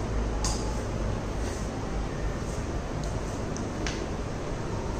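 Footsteps tap on a hard floor as a man walks.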